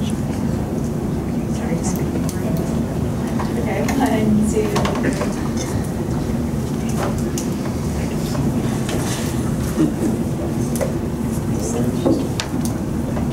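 Men and women murmur and chat quietly nearby in a room.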